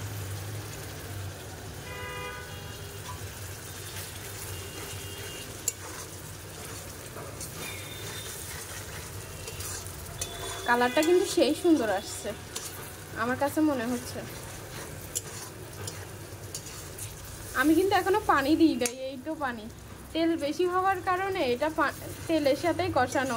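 A metal spatula stirs thick curry, scraping against a metal pan.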